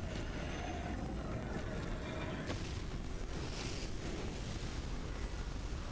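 A glowing creature bursts apart into a rushing shower of petals.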